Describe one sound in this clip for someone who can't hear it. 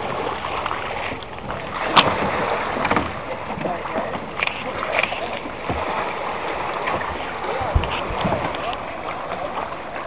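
Legs wade and slosh through shallow water.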